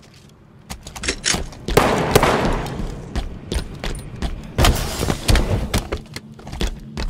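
A futuristic energy gun fires sharp blasts in quick bursts.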